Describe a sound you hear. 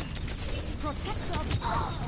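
Gunshots fire rapidly.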